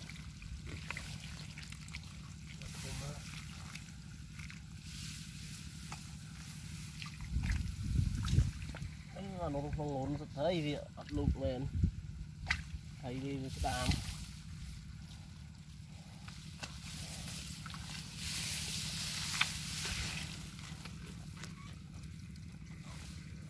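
Hands squelch and splash in wet mud.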